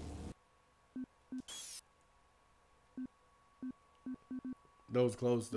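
Short electronic menu blips sound as options are selected.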